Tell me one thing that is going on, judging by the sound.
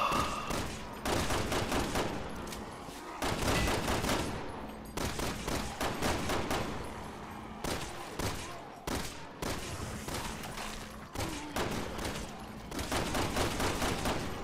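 Handguns fire rapid shots in bursts.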